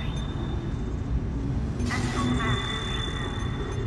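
Electronic menu tones chime as selections change.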